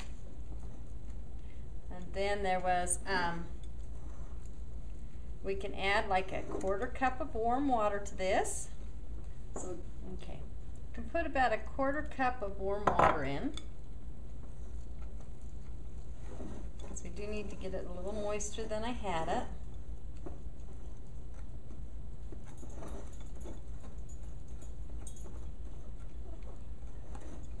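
A spoon scrapes and stirs in a bowl.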